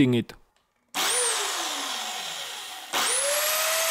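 A table saw motor spins down with a falling whine.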